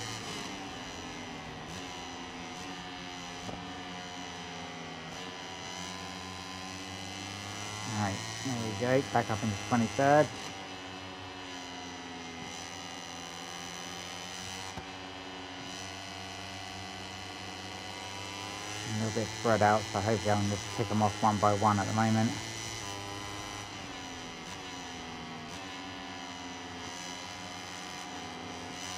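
A four-stroke racing motorcycle engine screams at high revs, rising and falling with the gears.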